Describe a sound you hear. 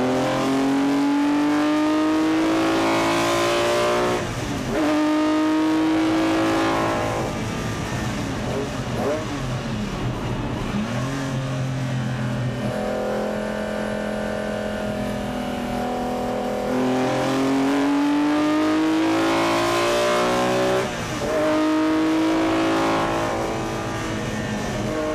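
A race car engine roars loudly, revving up and dropping with each gear change.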